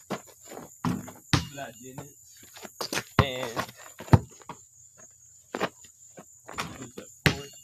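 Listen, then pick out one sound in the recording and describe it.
A basketball thumps against a backboard and bounces on the ground.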